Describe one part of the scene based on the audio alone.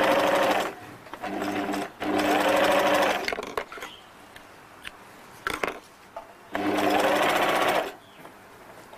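An electric sewing machine stitches fabric in short bursts.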